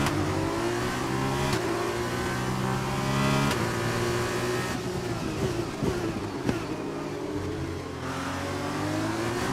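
A racing car engine roars at high revs, rising in pitch and dropping sharply with each gear change.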